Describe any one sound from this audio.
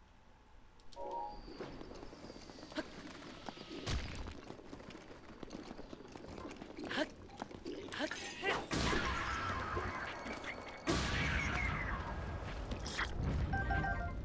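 A game's battle sounds clash and crackle.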